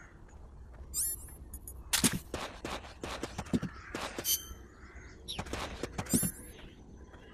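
Short electronic menu blips and chimes sound.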